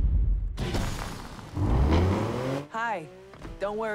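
A sports car engine revs.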